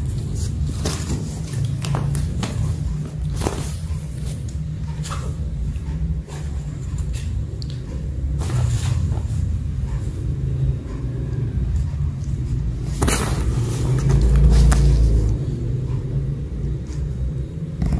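Small paws patter on a hard tiled floor.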